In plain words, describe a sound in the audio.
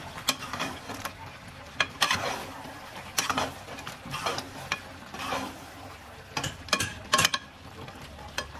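A metal ladle stirs chicken, scraping and clanking against a steel pot.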